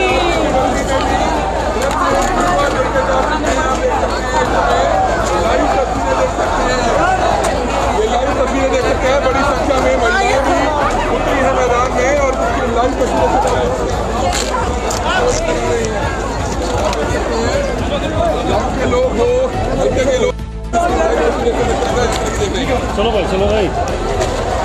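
A large crowd of men chants and shouts loudly outdoors.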